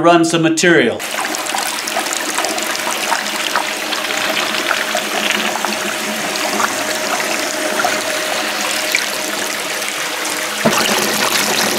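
Water pours steadily from a pipe and splashes into a tank.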